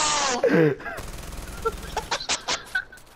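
A machine gun fires a short, rapid burst.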